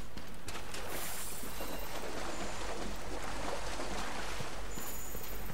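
Water splashes as someone wades through a shallow stream.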